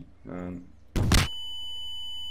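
A creature vanishes with a sudden loud burst.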